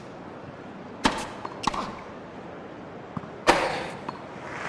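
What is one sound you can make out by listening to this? A tennis ball is struck sharply by a racket.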